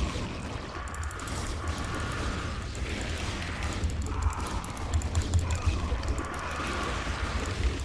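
Game gunfire and explosions crackle rapidly.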